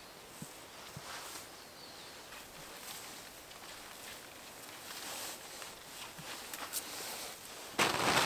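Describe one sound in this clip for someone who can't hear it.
Spruce branches rustle and swish as they are pulled through the undergrowth.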